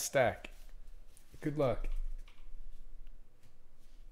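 A stack of cards taps down on a soft table.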